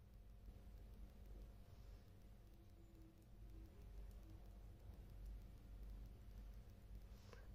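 Knitting needles click and scrape softly against each other.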